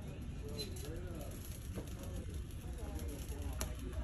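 A shopping cart rattles as it rolls along a hard floor.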